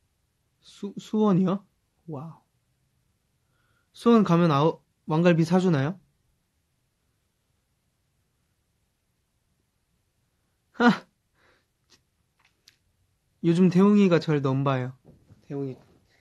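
A young man speaks softly and close by in short bursts.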